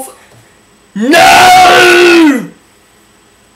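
A young man yells loudly close by.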